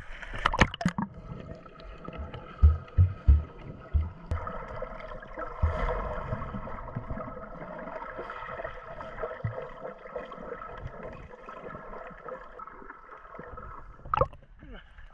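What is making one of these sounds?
Water rumbles and bubbles, muffled underwater.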